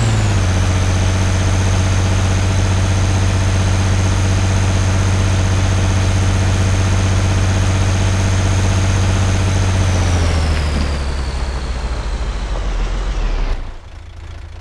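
An armoured eight-wheeled personnel carrier drives with a heavy engine drone, then slows.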